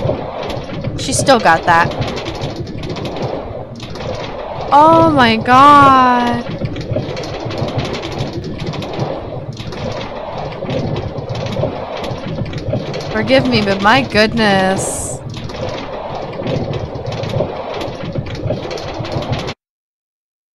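A minecart rattles steadily along metal rails.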